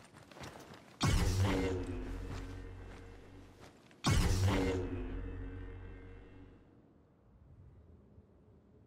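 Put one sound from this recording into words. A lightsaber hums with a low, steady buzz.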